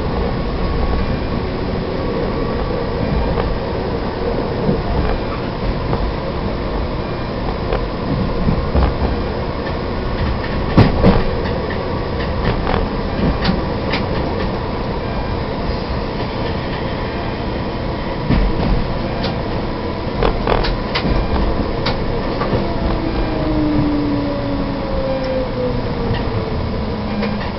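A tram rumbles steadily along rails.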